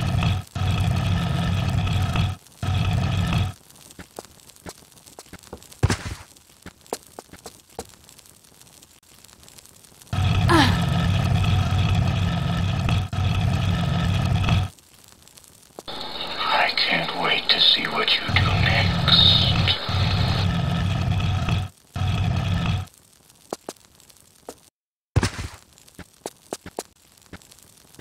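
Quick footsteps patter on a stone floor.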